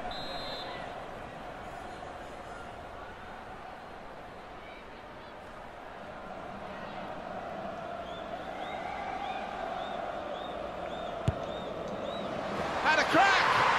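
A crowd murmurs in a large stadium.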